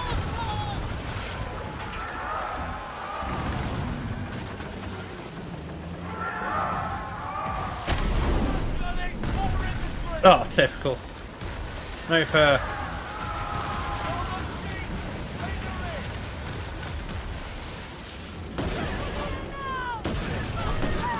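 Waves rush and splash against a sailing ship's hull.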